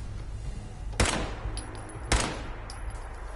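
Gunshots ring out twice.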